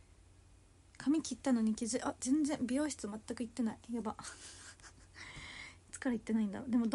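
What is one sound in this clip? A young woman speaks close to a microphone, lively and playful.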